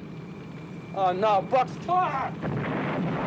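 A man shouts out nearby.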